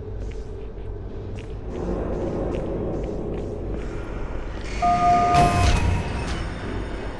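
A sci-fi energy weapon fires with sharp zaps.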